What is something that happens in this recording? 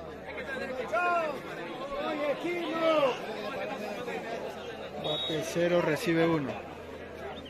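Men in a crowd shout loudly with excitement.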